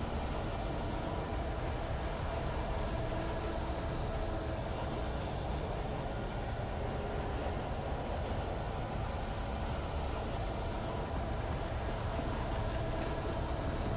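Footsteps crunch on a leafy forest floor.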